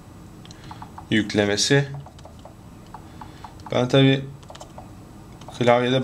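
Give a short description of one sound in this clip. Fingers tap quickly on a soft laptop keyboard.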